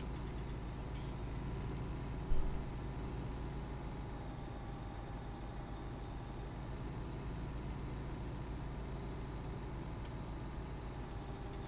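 A tractor engine rumbles steadily while driving.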